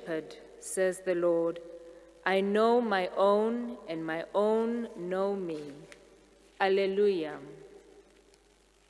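A young woman sings slowly into a microphone in an echoing hall.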